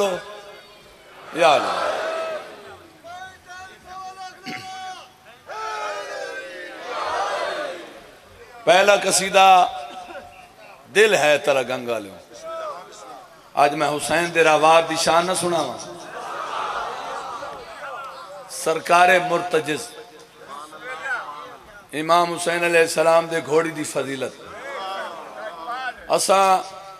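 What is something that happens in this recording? A large crowd of men chants loudly in unison, outdoors.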